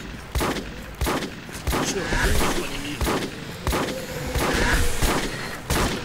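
A heavy gun fires loud shots at a steady pace.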